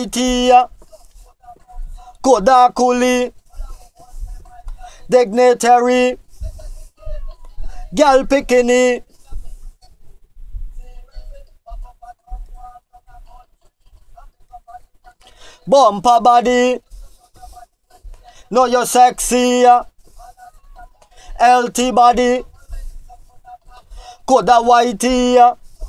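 A man sings close into a microphone in short, held phrases with pauses between them.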